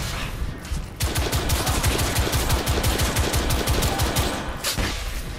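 A rifle fires in rapid bursts, echoing in a tunnel.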